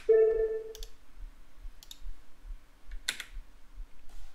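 Menu buttons click several times.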